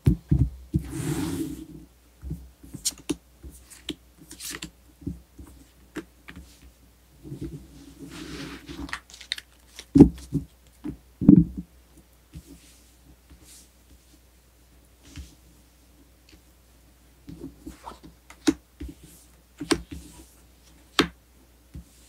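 Cards are tapped and laid down on a table.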